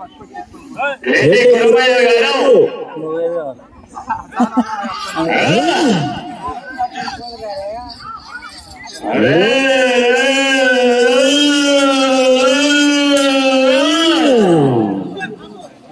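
A man's voice calls out loudly and drawn-out through a loudspeaker, echoing outdoors.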